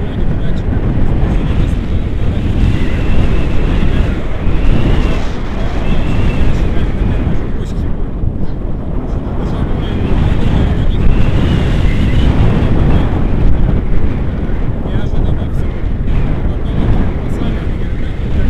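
Strong wind roars and buffets steadily at a microphone outdoors.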